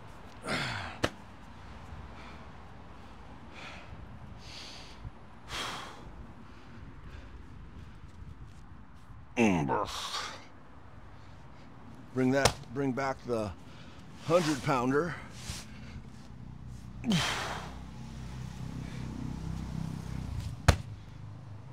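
A heavy sandbag thumps onto the ground.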